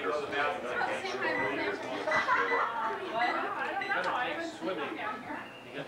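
Several men and women chat and talk over one another nearby.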